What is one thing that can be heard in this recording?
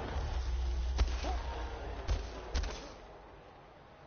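A heavy blade swings and strikes with loud thuds.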